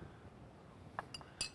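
Plates and cups clink softly.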